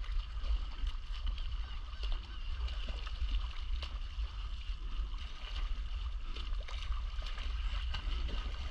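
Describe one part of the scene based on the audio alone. A swimmer splashes through the water with steady strokes.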